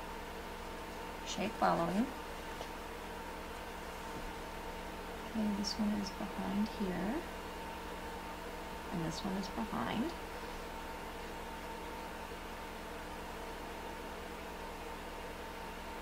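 A brush softly strokes paint onto a surface.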